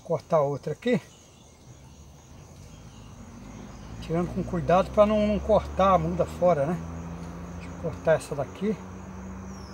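An elderly man talks calmly close by.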